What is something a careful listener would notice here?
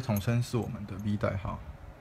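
Metal pieces clink softly in fingers.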